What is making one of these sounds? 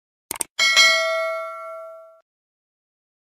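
A small bell chimes brightly and rings out.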